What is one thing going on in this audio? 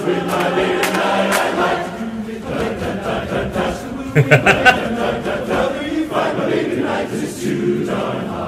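A man laughs, close to a microphone.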